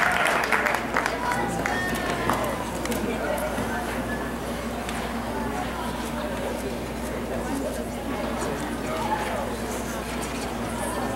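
Several men talk nearby in a large echoing arena.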